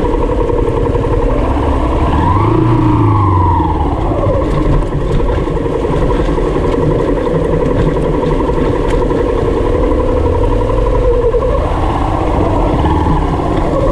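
A motorcycle engine rumbles steadily close by, revving up and down.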